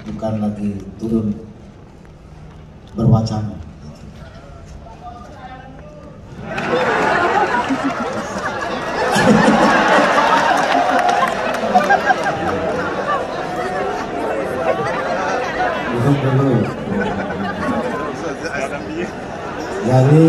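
An older man speaks calmly through a loudspeaker in a large echoing hall.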